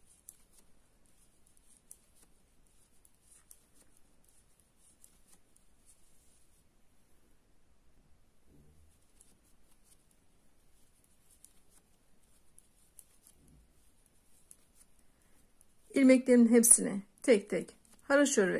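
Knitting needles click and tick softly and steadily.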